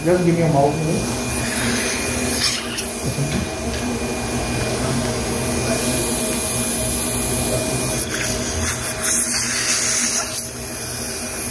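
A suction tube hisses and gurgles steadily.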